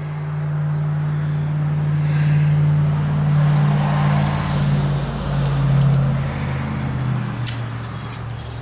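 A small engine idles with a steady low hum.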